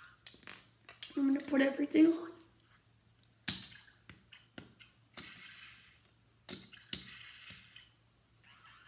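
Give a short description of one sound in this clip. Small plastic toy bricks click and snap together.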